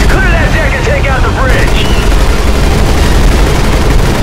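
Anti-aircraft guns fire in bursts.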